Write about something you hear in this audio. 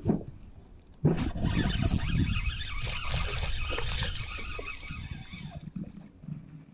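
A spinning reel is cranked, its line winding in.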